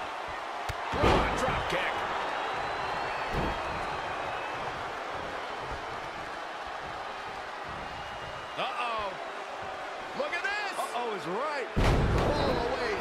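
Heavy thuds of bodies slamming onto a wrestling ring mat.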